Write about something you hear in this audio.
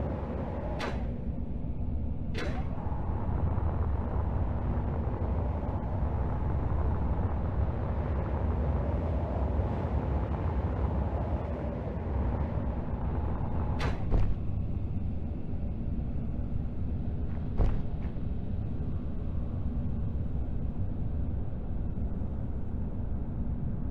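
A jetpack thruster roars with a steady low rumble.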